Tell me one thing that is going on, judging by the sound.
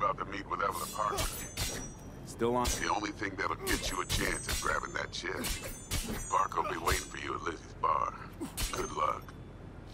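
A metal blade scrapes and clangs on pavement.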